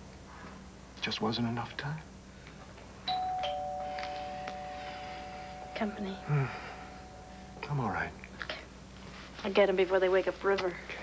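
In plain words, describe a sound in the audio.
A man speaks softly and calmly nearby.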